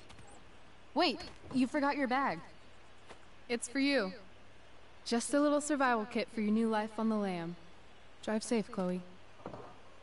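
A young woman speaks warmly through game audio.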